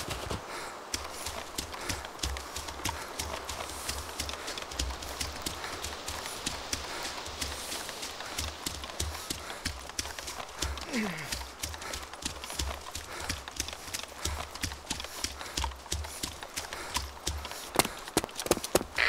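Footsteps tread through grass.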